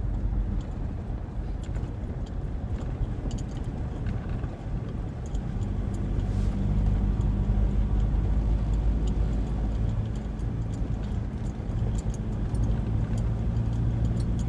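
An engine hums steadily inside a moving car.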